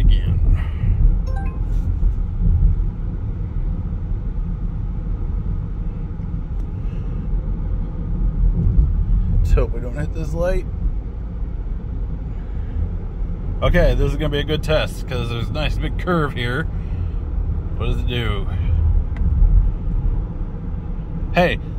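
A car engine hums steadily and tyres rumble on the road from inside the car.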